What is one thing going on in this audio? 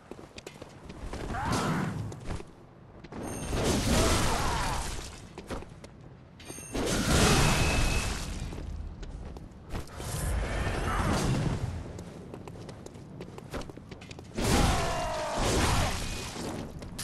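Metal weapons clash and strike with heavy impacts.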